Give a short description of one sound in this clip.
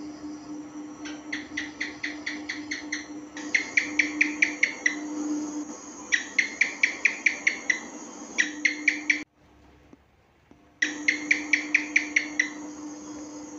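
A gecko chirps in quick runs of sharp clicks.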